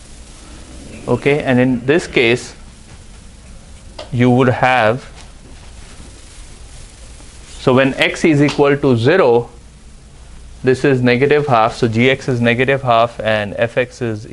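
A man speaks calmly in a lecture voice, in a room with some echo.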